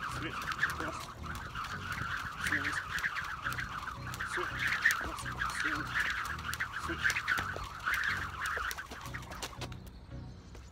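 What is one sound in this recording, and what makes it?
A skipping rope slaps the pavement in a quick, steady rhythm.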